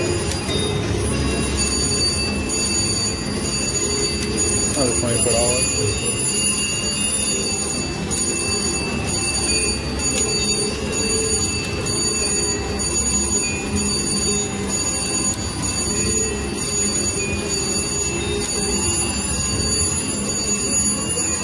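Slot machine reels spin and stop with soft clunks.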